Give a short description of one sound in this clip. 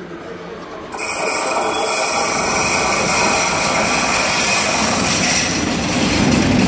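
A locomotive horn sounds with a loud steady blare.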